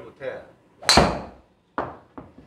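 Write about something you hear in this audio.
A golf club swishes through the air.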